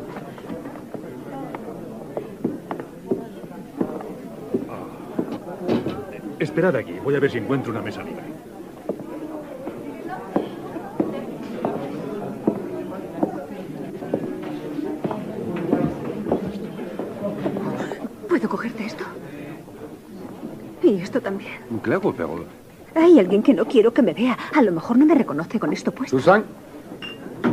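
A crowd chatters in a busy room.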